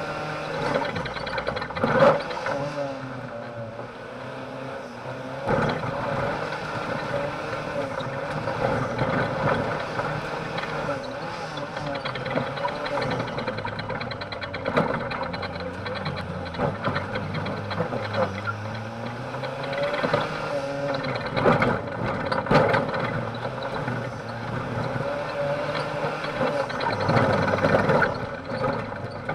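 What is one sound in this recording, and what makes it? The car body rattles and bangs over bumps.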